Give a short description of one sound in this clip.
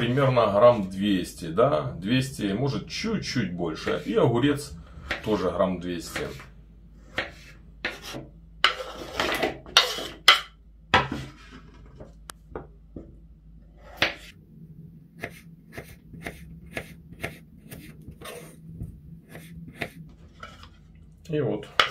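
A knife chops through crisp radishes on a wooden board with sharp taps.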